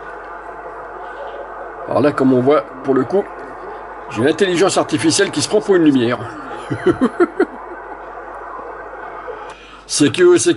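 A radio hisses with steady static.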